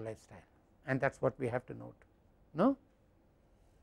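An elderly man speaks briefly through a clip-on microphone.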